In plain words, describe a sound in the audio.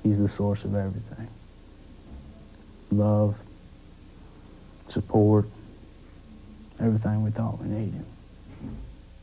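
A young man speaks slowly and quietly, with long pauses, close by.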